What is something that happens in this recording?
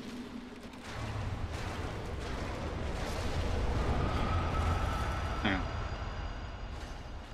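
A huge creature roars and thrashes with a deep rumble.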